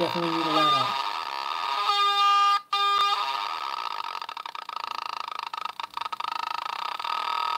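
A small electronic device plays buzzing electronic tones that slide and shift in pitch.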